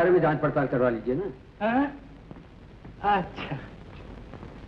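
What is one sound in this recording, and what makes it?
A middle-aged man laughs and talks cheerfully up close.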